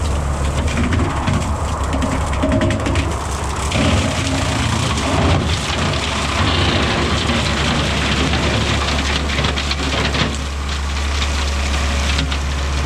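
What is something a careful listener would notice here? A rotary mower chops and shreds brush with a rough, crackling roar.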